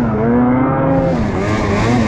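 Pine branches brush and scrape against the snowmobile.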